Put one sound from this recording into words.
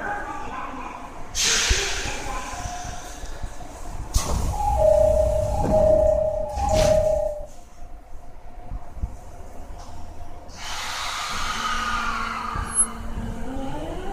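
An electric train hums quietly while standing still.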